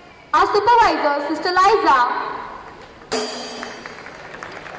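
A woman's voice rings out loudly over a loudspeaker, with echo.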